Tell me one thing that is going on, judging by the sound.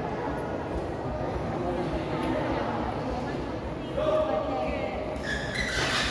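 A crowd of spectators chatters and calls out in a large echoing hall.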